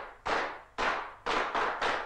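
A column of marching boots tramps on cobblestones.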